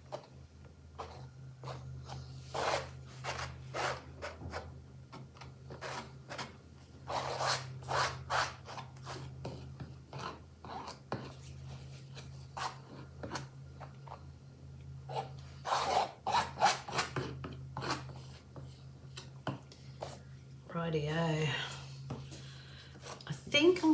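A palette knife scrapes and smooths thick wet paint.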